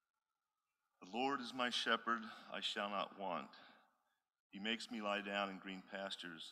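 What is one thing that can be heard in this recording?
A man sings through a microphone.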